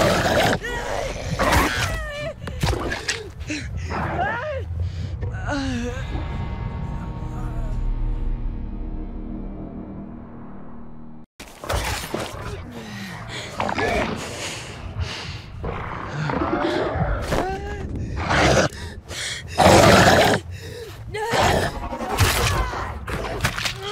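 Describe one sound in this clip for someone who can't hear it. Heavy blows thud and smack in a fight.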